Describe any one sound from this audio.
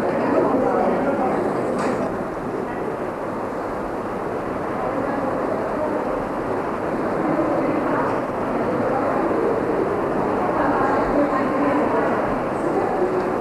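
A group of women chatter quietly nearby.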